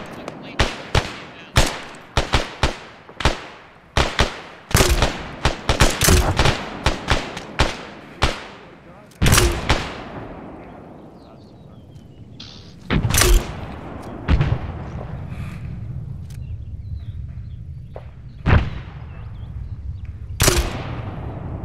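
Rifle shots crack and echo across open ground.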